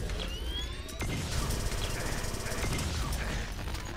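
A large explosion booms and roars.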